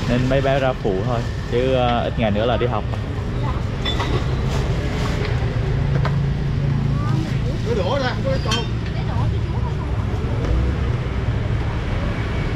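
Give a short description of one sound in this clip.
Traffic and motorbikes rumble steadily outdoors.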